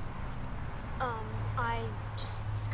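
A young girl speaks quietly, close by.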